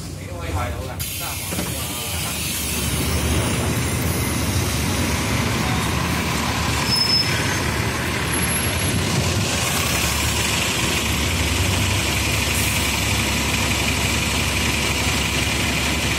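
Street traffic hums outdoors.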